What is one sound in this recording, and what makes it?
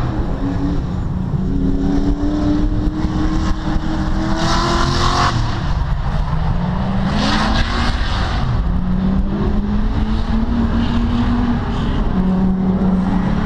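Race car engines rev and roar in the distance, rising and falling.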